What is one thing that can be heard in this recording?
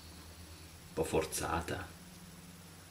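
A man speaks softly up close.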